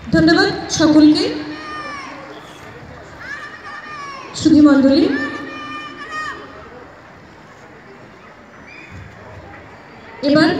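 A man announces loudly through a loudspeaker, his voice echoing across an open field.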